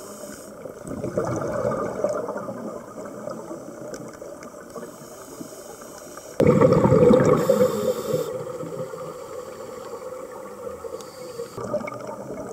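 A diver's exhaled air bubbles burble loudly underwater in bursts.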